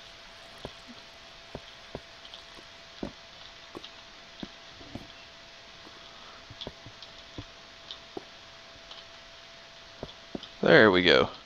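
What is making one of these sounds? Footsteps tap steadily on a ladder and stone floor.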